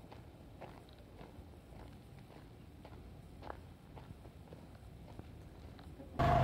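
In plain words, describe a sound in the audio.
Chickens cluck softly close by.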